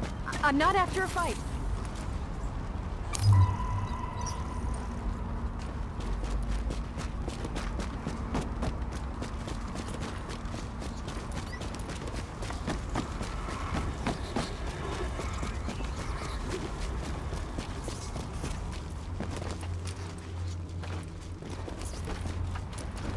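Footsteps crunch steadily over snow and litter.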